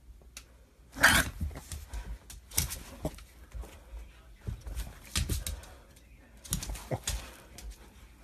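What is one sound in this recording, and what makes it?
A small dog scuffles and thrashes on a blanket in bursts of rustling and thumping.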